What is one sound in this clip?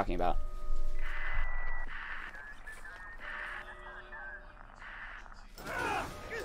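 A radio handset crackles with bursts of static.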